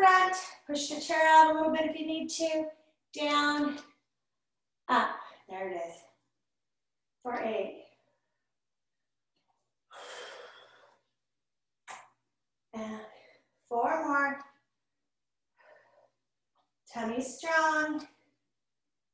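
A woman talks calmly and clearly into a nearby microphone, pausing between phrases.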